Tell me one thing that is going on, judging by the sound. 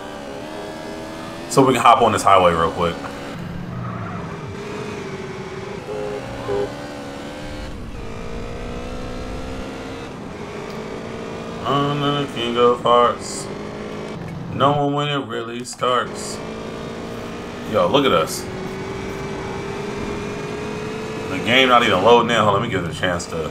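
A motorcycle engine hums steadily, rising and falling in pitch.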